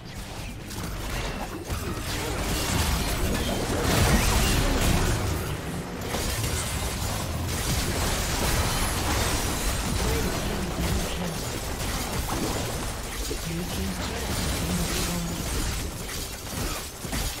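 Magic blasts whoosh and crackle in a busy fight.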